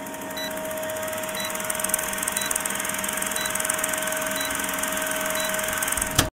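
A film projector rattles steadily.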